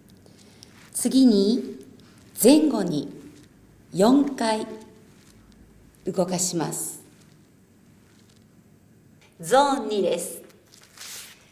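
A young woman speaks calmly and clearly, close to a microphone, in short phrases with pauses.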